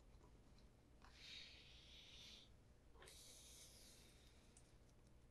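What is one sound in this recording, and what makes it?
A brush scrubs briskly across a leather shoe sole.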